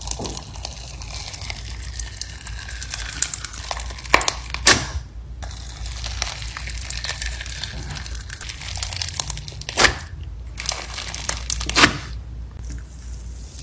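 Glittery slime crunches and crackles as a metal scoop digs into it.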